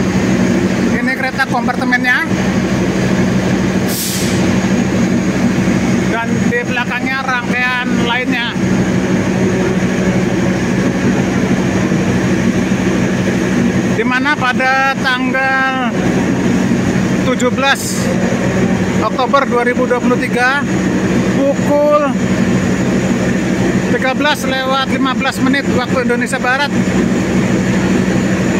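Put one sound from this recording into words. A waiting train hums low and steady.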